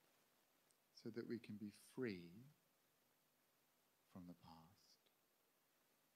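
A man speaks calmly and slowly into a microphone, with long pauses.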